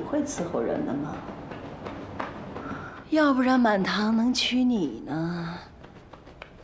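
A young woman speaks softly and playfully close by.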